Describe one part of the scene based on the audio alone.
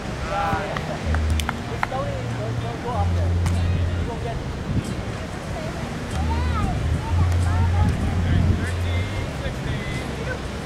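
Waves wash onto the shore in the distance.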